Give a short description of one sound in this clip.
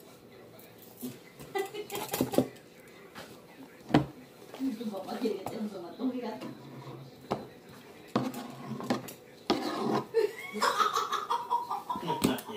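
Young girls talk and laugh close by.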